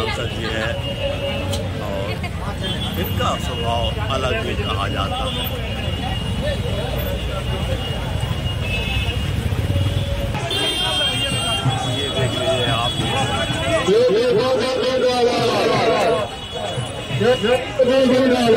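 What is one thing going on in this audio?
A crowd of men chatter loudly all around, close by.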